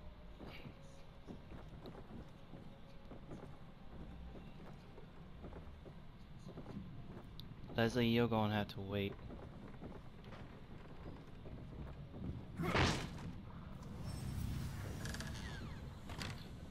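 Footsteps thud on creaking wooden stairs and floorboards.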